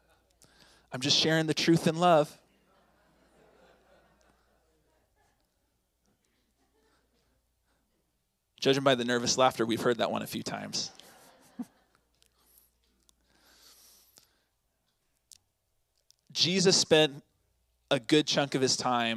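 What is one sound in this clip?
A man speaks calmly into a microphone, with pauses between phrases.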